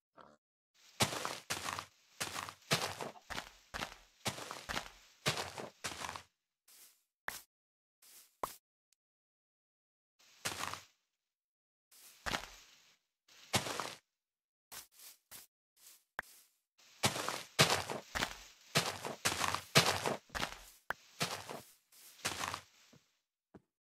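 Leaves rustle and crunch in quick, repeated bursts.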